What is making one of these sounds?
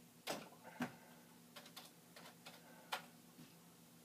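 A man taps keys on a keyboard.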